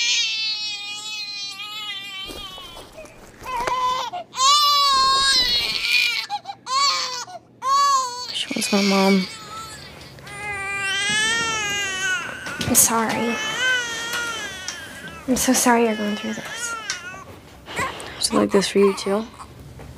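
A newborn baby cries and wails loudly, close by.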